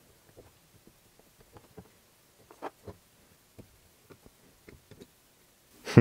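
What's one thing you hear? Small metal parts click and tap softly as they are handled.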